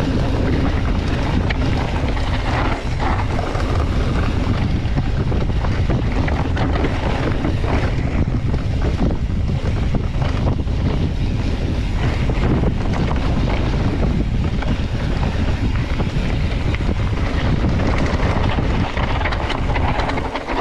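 Mountain bike tyres rumble over a dirt trail.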